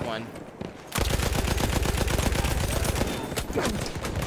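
A mounted machine gun fires.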